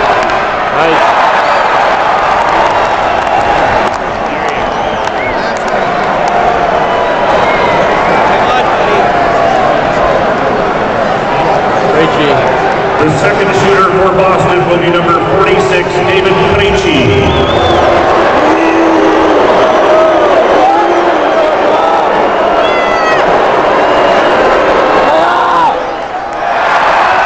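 A large arena crowd cheers and roars loudly throughout.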